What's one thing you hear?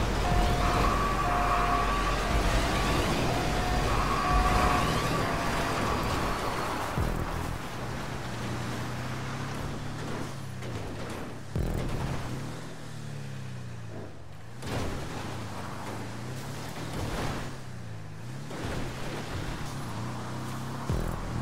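A small off-road buggy engine roars and revs up and down.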